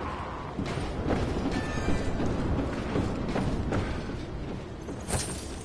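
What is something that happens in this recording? Heavy footsteps thud slowly.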